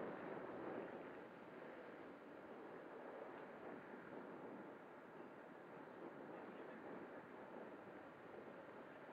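Wind rushes steadily over the microphone.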